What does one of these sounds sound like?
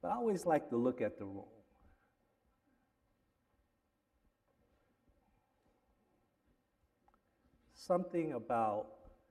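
A middle-aged man speaks with animation into a microphone, with pauses.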